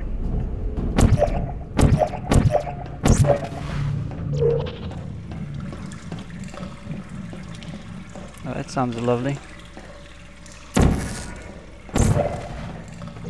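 A portal gun fires with sharp electronic bursts.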